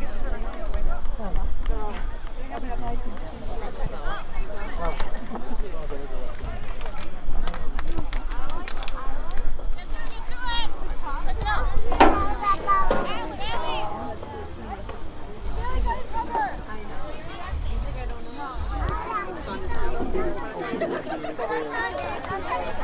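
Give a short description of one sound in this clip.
Young women and men shout and call out across an open field.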